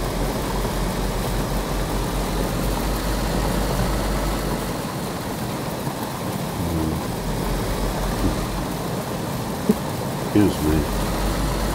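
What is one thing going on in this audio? Tyres rustle and bump over rough grass.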